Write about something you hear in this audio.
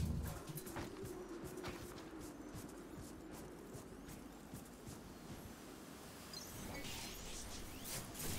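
Heavy armoured footsteps thud on dry ground.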